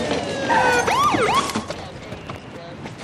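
A man speaks urgently inside a moving car.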